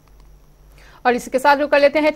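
A young woman reads out the news clearly through a microphone.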